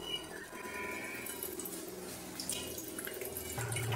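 Water runs from a tap into a metal bowl.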